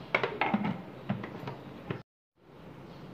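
A blender whirs loudly.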